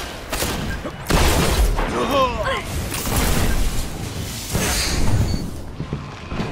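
Gunshots fire in quick, loud bursts.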